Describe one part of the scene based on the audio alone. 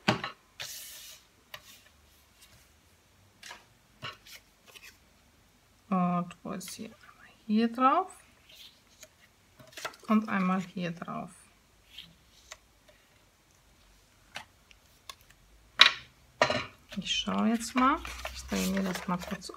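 Paper rustles and slides on a tabletop as it is handled.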